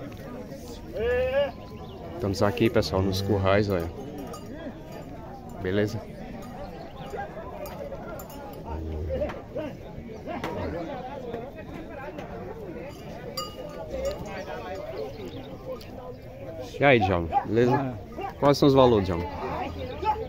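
Men talk loudly nearby outdoors.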